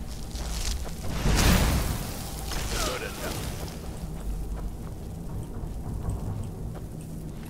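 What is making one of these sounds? A frost spell hisses and crackles in bursts.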